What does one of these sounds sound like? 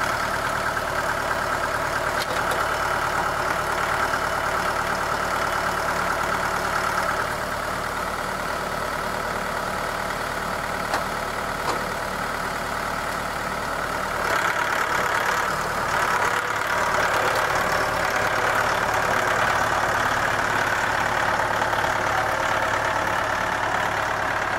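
A tractor engine runs steadily nearby.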